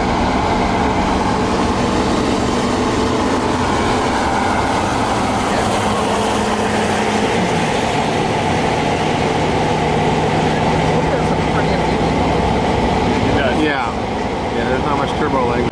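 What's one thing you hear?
Tyres roar on the road at speed.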